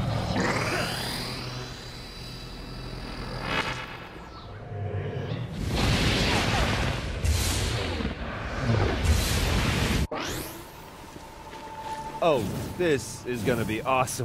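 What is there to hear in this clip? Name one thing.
Electric energy crackles and hums.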